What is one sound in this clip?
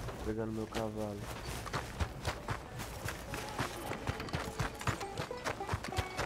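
Footsteps thud quickly on dirt.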